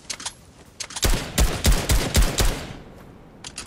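A gun fires a rapid burst of loud, echoing shots.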